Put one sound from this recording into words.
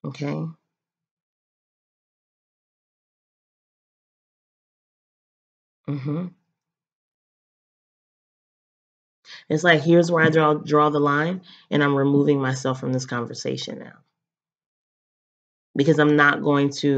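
A young woman talks calmly and close up, with pauses.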